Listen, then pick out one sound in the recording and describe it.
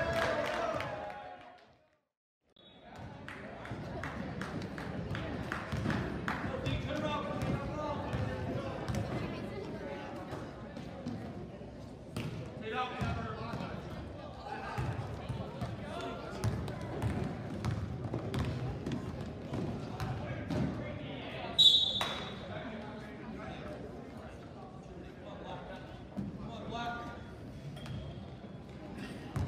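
A crowd of spectators murmurs and cheers.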